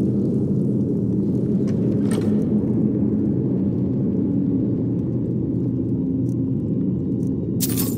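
A torch fire burns with a low, steady rumble.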